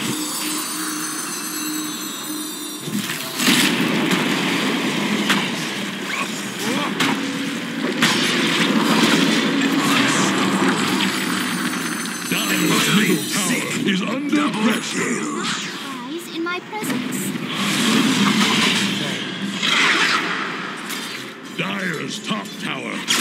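Magic spells blast and crackle in a fast fight.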